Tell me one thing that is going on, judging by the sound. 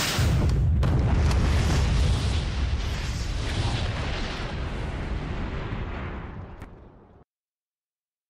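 A huge explosion booms and rumbles, then slowly fades.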